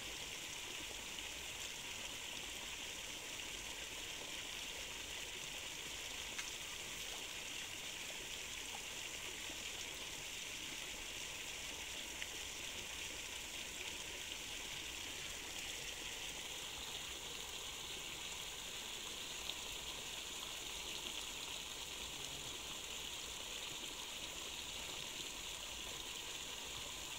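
River water flows steadily nearby.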